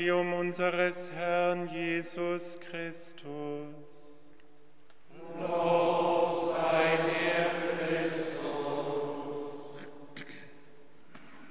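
A group of men chant together, echoing in a large hall.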